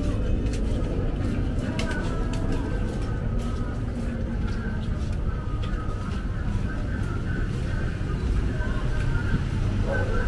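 Footsteps shuffle nearby.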